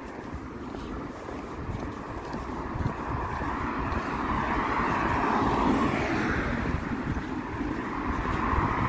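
Wind rumbles and buffets against a microphone outdoors.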